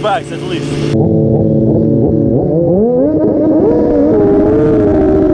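A motorcycle engine roars and revs while riding.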